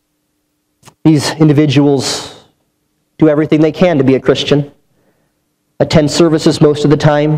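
A man speaks with emphasis into a microphone, with pauses between phrases.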